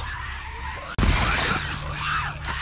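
A gun fires once with a loud bang.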